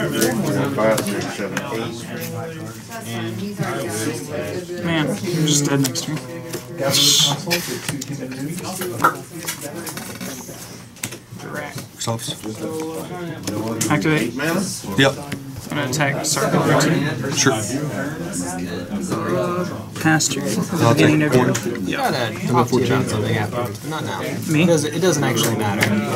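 Playing cards slide and tap softly on a rubber mat.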